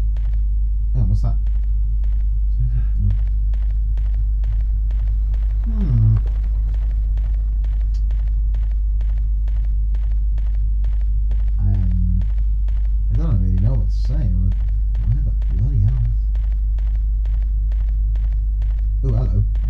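A man speaks in short bursts nearby.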